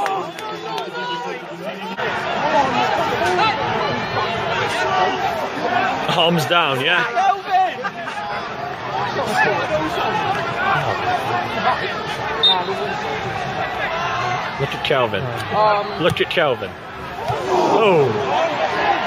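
Men in the crowd nearby shout and cheer.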